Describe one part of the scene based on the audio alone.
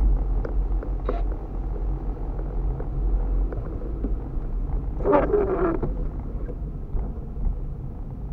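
A car engine rumbles low and steady from inside.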